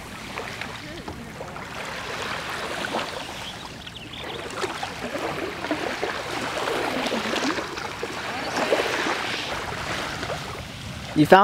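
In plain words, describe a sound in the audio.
A paddle splashes softly in calm water.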